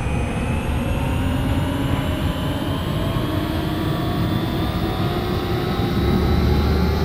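An electric train hums steadily, its motor whine slowly rising in pitch as it speeds up.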